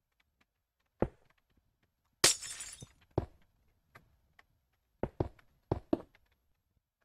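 Glass blocks are set down with short, soft knocks.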